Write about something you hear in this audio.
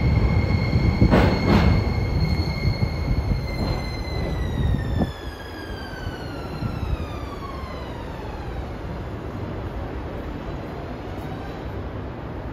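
A train's motor whines and falls steadily in pitch as the train slows to a stop.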